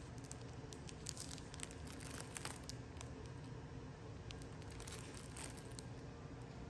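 Plastic wrapping crinkles and rustles as a hand picks up a packet.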